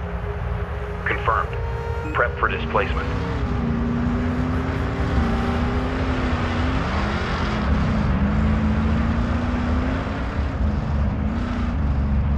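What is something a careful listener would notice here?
A light vehicle's engine hums as it drives over sand.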